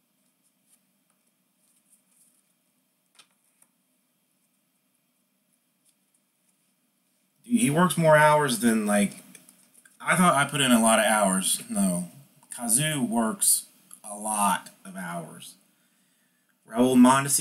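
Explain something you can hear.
Cards rustle and click softly as they are flipped through by hand.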